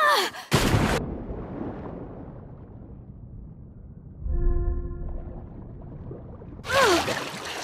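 Muffled water rumbles and bubbles underwater.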